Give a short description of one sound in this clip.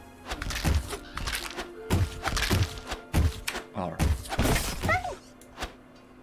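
Sword strikes and magic blasts clash in a fast video game fight.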